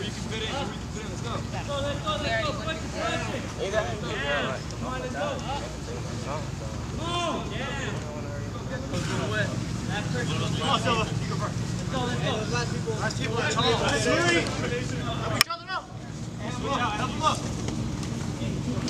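A group of young men talk and call out outdoors.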